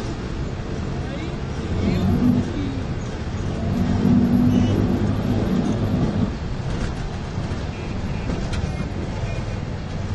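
Waves break and wash onto a shore.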